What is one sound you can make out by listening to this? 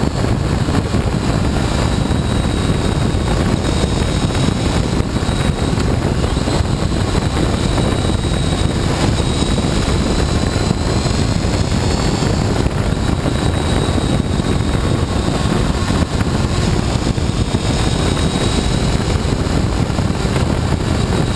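Wind roars past loudly.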